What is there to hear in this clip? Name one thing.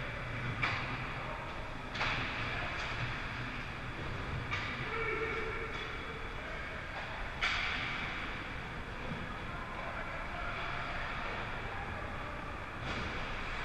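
Skate blades scrape and carve across the ice.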